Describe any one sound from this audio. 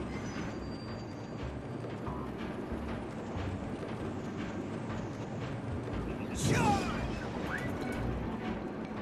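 A cart rumbles and clatters steadily along metal rails.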